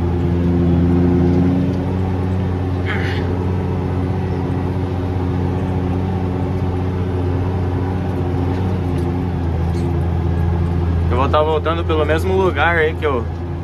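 A tractor engine drones under load, heard from inside the cab.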